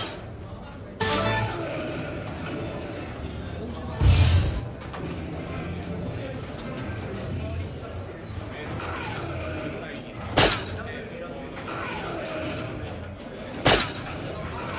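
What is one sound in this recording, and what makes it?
Darts thud sharply into a dartboard.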